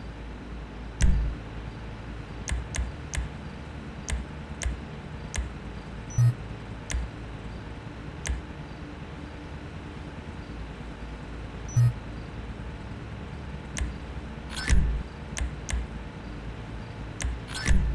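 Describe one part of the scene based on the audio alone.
Short, soft clicks tick now and then.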